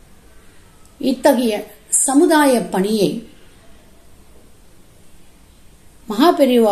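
An elderly woman speaks calmly and close to the microphone, with pauses.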